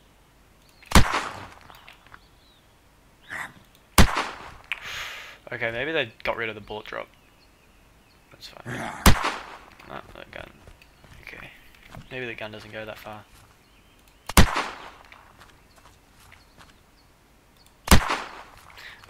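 A gun fires single loud shots, each with a short echo.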